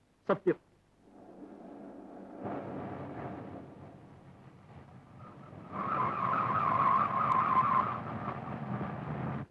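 A car engine hums as the car drives along a road.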